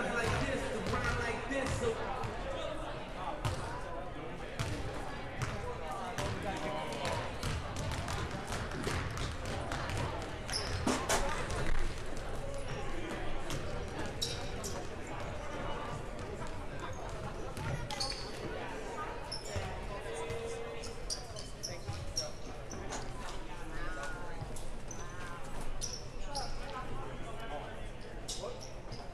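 Sneakers squeak on the court.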